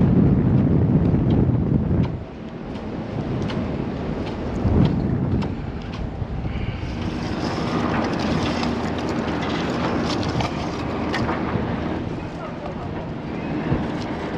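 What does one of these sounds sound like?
Climbing gear clinks and rattles against a metal mast.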